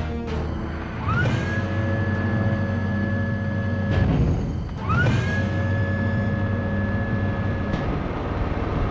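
A heavy metal door slides open with a rising hum.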